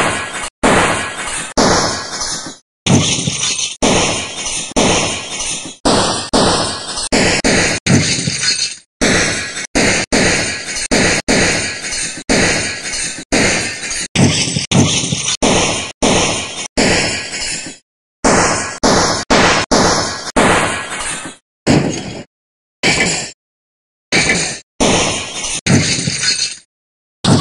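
A hammer strikes glass again and again, each blow cracking it with a sharp smash.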